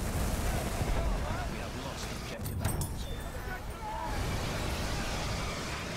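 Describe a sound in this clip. Shells explode with deep booms.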